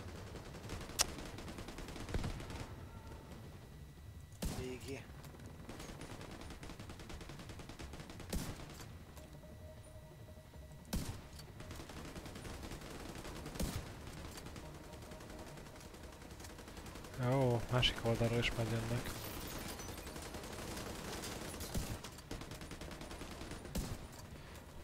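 Rifle shots crack in a game.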